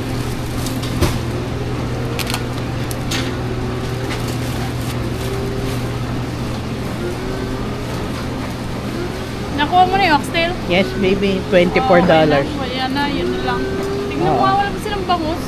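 A steady low hum of refrigeration runs throughout.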